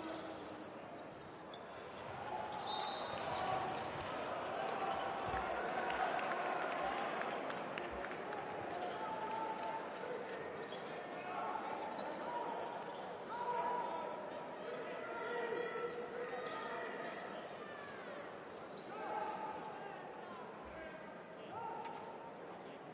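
A crowd cheers and chatters in a large echoing arena.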